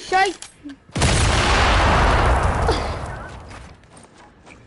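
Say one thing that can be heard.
An explosion booms, then fades.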